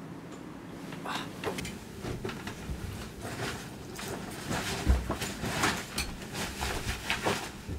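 Bedsheets rustle as a woman gets up.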